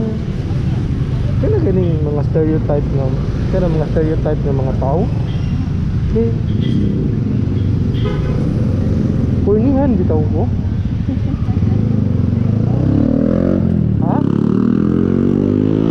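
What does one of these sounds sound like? A scooter engine hums steadily close by.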